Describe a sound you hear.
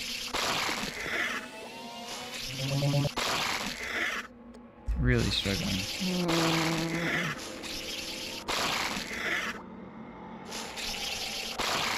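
A vacuum whooshes loudly and steadily.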